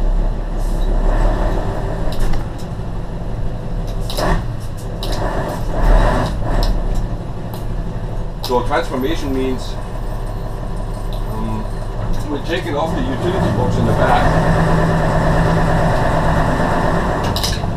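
A heavy diesel truck engine drones as the truck drives along a road, heard from inside the cab.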